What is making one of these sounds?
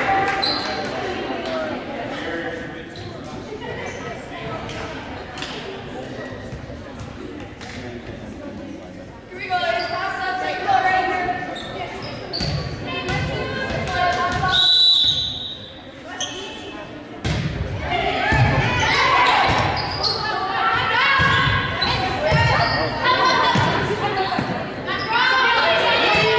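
Young women shout and call out to one another in a large echoing gym.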